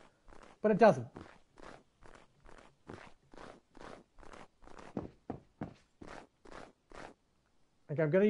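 Quick footsteps crunch through snow.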